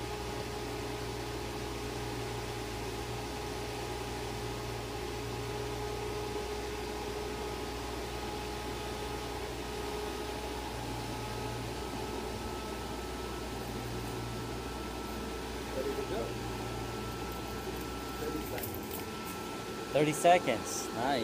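A blower fan hums steadily.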